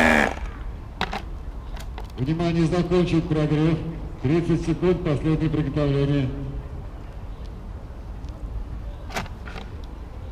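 Plastic parts click and knock as a man handles a model.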